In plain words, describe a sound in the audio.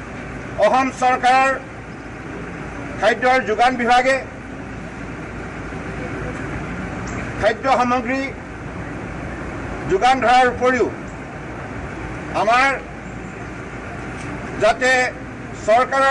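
A man speaks in short bursts with long pauses through microphones.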